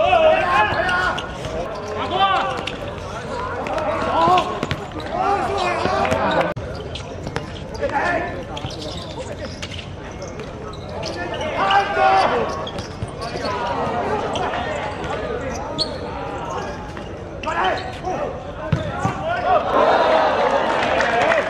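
Men shout and call out across an outdoor court.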